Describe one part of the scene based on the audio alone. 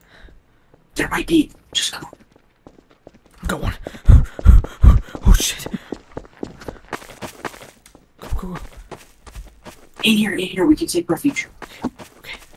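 A man speaks in short bursts nearby.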